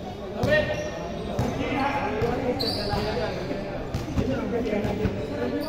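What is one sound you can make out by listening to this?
Men's voices chatter in the background of an echoing hall.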